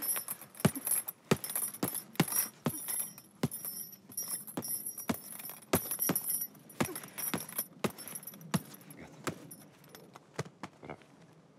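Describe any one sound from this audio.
Boxing gloves thump repeatedly against a heavy punching bag.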